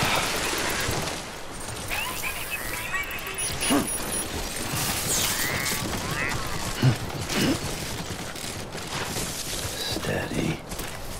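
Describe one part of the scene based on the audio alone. Footsteps tramp through grass.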